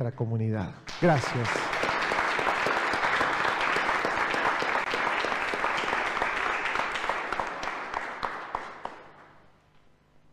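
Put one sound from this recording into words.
A man claps his hands briskly.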